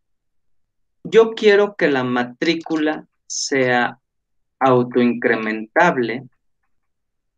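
A man speaks calmly and steadily into a close microphone, as if explaining.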